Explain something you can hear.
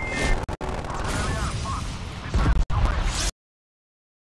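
Heavy explosions boom in quick succession.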